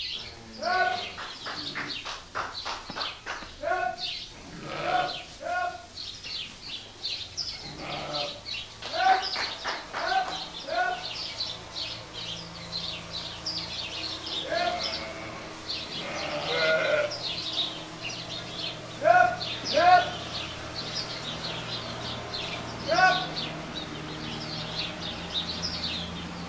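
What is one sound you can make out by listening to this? Many sheep bleat loudly and often, close by.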